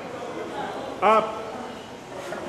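A man grunts loudly under strain.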